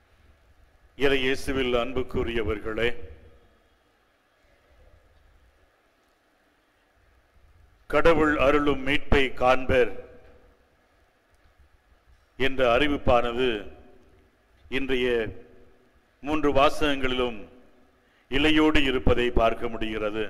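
An elderly man speaks slowly through a microphone in an echoing hall, pausing between phrases.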